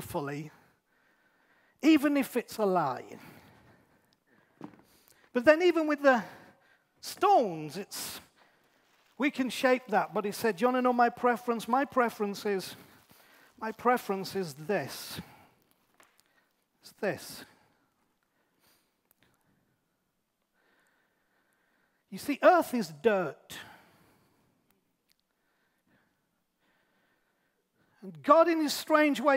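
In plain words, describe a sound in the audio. A middle-aged man speaks with animation into a microphone, with pauses.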